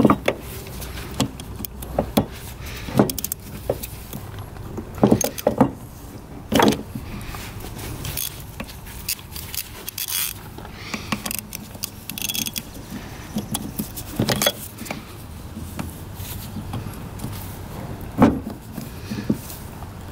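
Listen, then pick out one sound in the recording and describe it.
Metal tools clink and knock against a motorcycle's parts.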